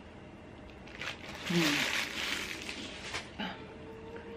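A plastic wrapper crinkles in a woman's hands.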